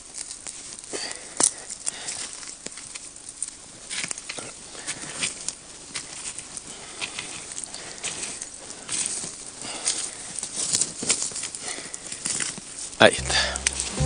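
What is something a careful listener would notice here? A wooden stick pokes and scrapes through crackling embers.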